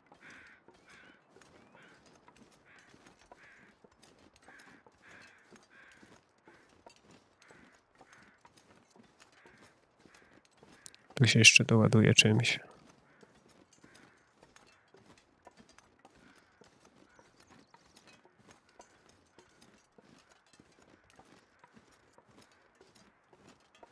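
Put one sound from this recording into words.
Footsteps crunch steadily through deep snow.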